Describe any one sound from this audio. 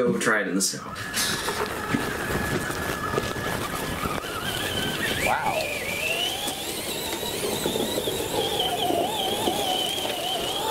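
An electric motor whines and changes pitch as a small car races about.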